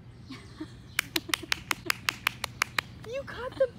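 A toddler claps her hands quickly.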